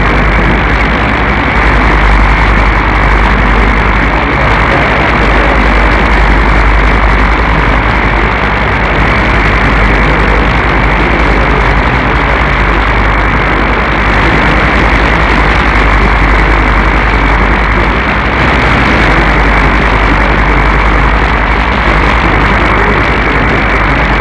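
A radio receiver hisses with steady, muffled static.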